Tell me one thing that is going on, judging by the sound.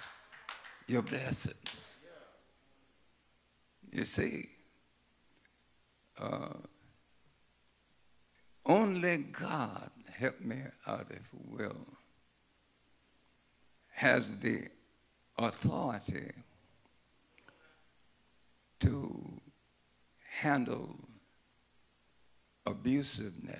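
An elderly man preaches through a microphone in short bursts with pauses between them.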